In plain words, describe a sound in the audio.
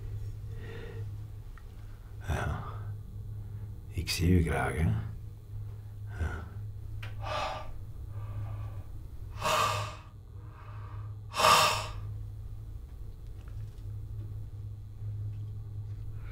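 A man mutters and grunts to himself nearby.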